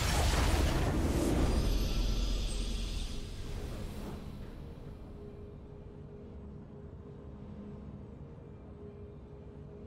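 Triumphant game music swells.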